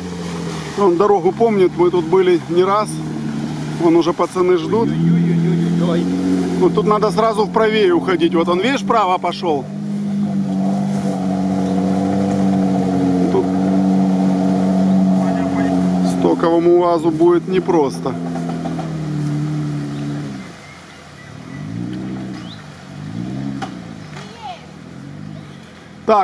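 An off-road vehicle's engine rumbles and revs while driving through water, then fades into the distance.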